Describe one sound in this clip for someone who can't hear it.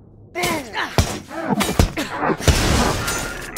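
A heavy club smashes into metal with loud, sharp blows.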